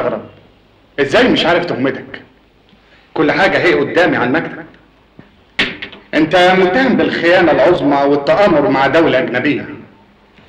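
A man speaks firmly, close by.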